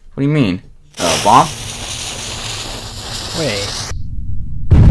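A bomb's fuse fizzes and hisses.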